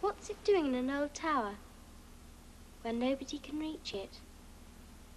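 A young girl speaks quietly and earnestly close by.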